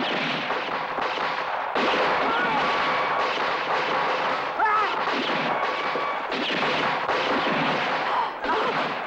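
Pistol shots crack out sharply.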